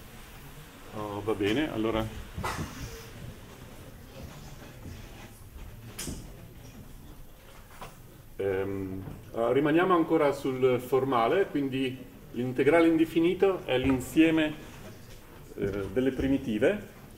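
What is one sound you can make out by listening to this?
A man lectures with animation in an echoing room.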